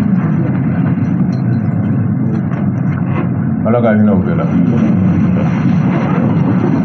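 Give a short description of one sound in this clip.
A man speaks steadily into a microphone, close up.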